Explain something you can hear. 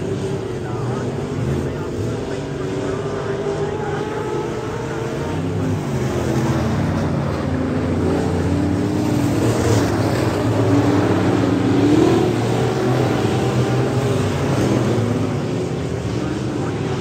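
Race car engines roar and whine around a dirt track, rising and falling in pitch.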